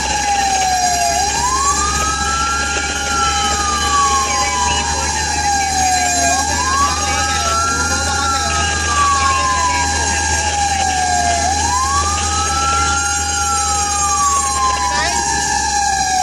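A siren wails up and down close by, over and over.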